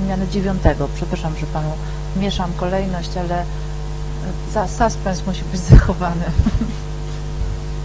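A woman speaks calmly into a microphone, amplified through a loudspeaker.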